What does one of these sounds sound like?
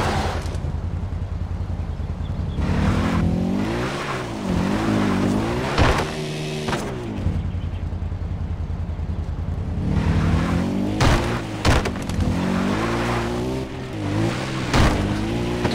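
A quad bike engine idles and revs up and down while driving over rough ground.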